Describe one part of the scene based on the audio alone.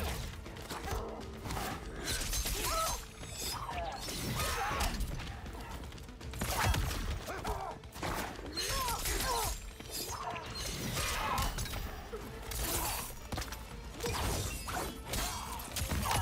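A fighter grunts and shouts with effort.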